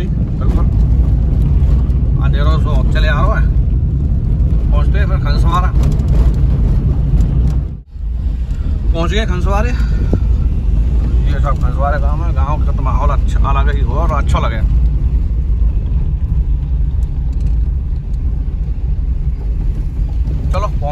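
Tyres rumble over a rough dirt road.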